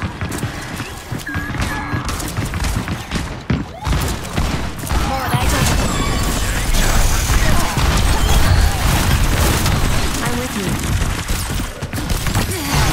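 Gunfire and blasts from a video game crack and boom rapidly.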